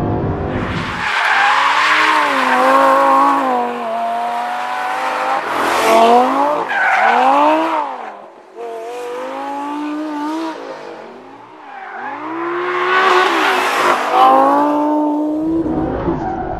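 A sports car engine roars and revs hard.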